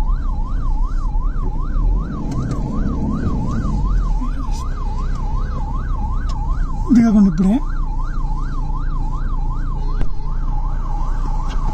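A police siren wails rapidly up and down close by.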